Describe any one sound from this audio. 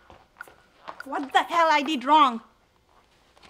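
A woman speaks in a high, sing-song voice nearby.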